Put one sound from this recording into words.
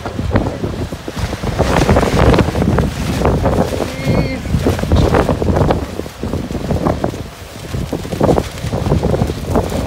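Strong wind gusts and buffets loudly outdoors.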